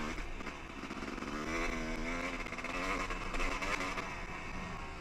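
A motorcycle engine revs and drones up close.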